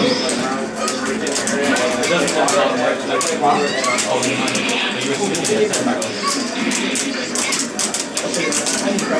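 Lively game music plays through a small loudspeaker.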